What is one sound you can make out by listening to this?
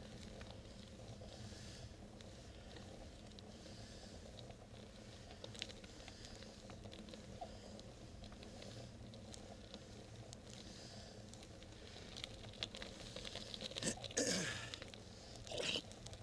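Wind rushes steadily past, outdoors.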